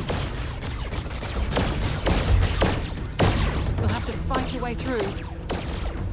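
Laser guns fire in sharp, rapid bursts.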